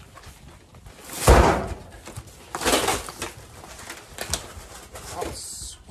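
Cardboard scrapes and rustles as a box is opened.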